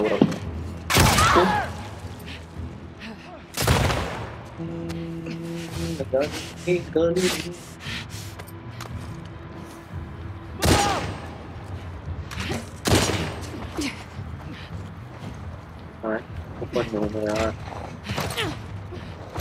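Gunshots bang loudly with a short echo.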